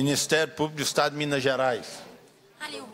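A woman speaks loudly and with animation through a microphone in a large room.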